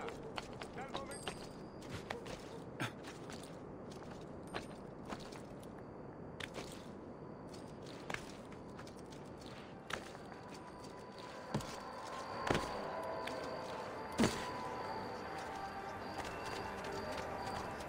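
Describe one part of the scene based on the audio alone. Footsteps and hand grips clatter on roof tiles and stone in quick knocks.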